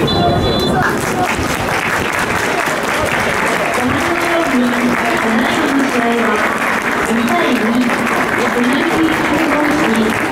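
A crowd of supporters chants and sings together loudly.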